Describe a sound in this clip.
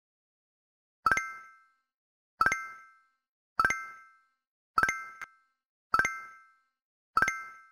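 A short bright chime rings each time a letter tile is picked, in a steady rhythm.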